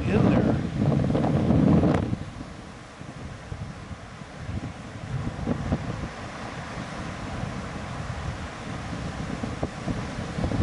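Waves crash and wash onto a shore.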